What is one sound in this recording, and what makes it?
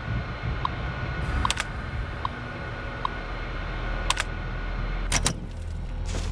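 Computer terminal keys click and beep.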